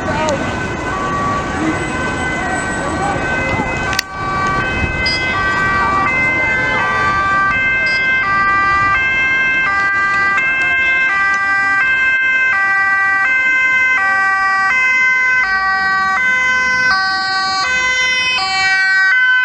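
A two-tone ambulance siren alternates high and low, growing louder as it approaches.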